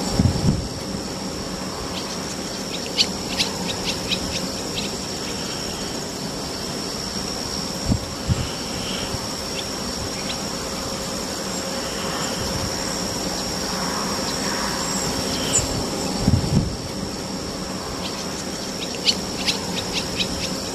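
Wind gusts outdoors, buffeting now and then with low rumbles.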